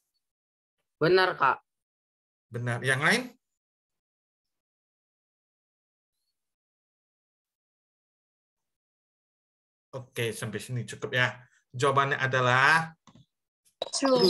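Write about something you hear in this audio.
A young man speaks with animation through an online call, in short bursts with pauses.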